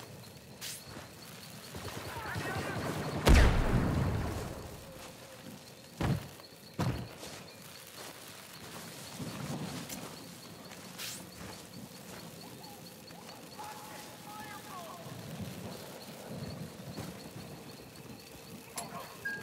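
Fire crackles softly nearby.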